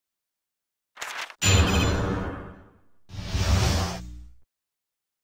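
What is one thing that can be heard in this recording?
A swooshing game sound effect sweeps in with a title banner.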